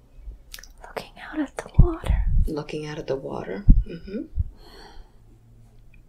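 An elderly woman moans and groans in pain close by.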